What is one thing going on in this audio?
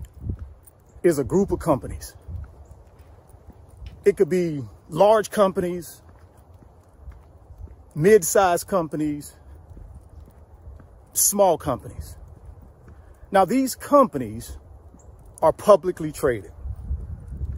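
A middle-aged man speaks calmly and close up, in short bursts with pauses, outdoors.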